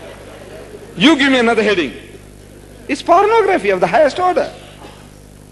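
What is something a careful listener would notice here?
An elderly man speaks into a microphone in bursts, heard through a loudspeaker.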